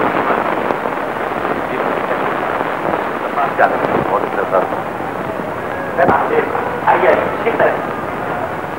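A man talks with animation in a large room.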